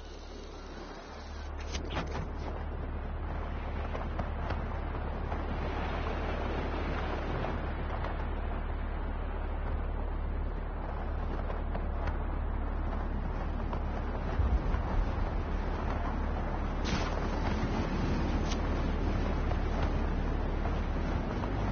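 Wind rushes loudly past in fast flight and grows stronger.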